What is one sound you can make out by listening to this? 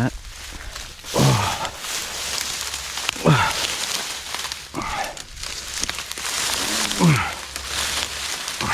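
Dry grass and reeds rustle and crackle as a hand pushes through them.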